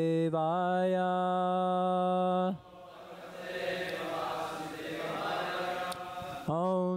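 A man chants long, steady held notes into a microphone.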